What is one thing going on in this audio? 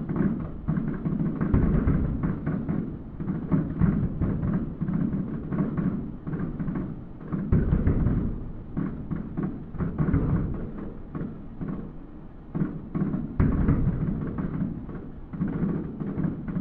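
Fireworks boom and crackle in the distance.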